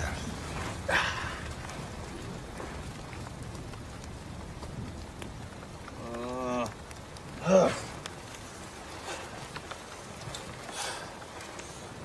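A man rustles as he turns over on the ground.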